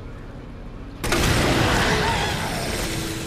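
An explosion booms and echoes in a tunnel.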